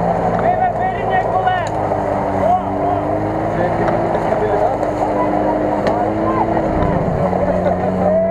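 Tyres churn through thick mud.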